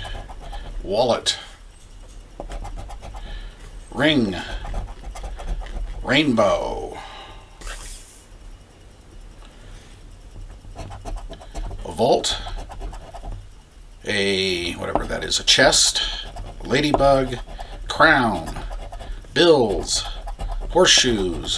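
A coin scrapes across a scratch card.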